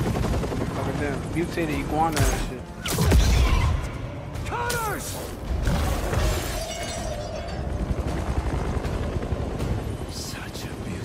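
A man speaks with a gruff, mocking voice.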